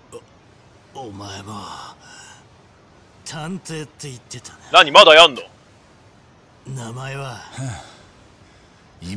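A middle-aged man speaks tensely, close by.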